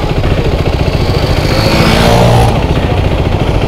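Another motorcycle approaches and roars past.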